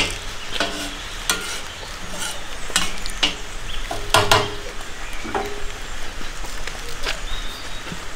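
A knife chops herbs on a wooden board.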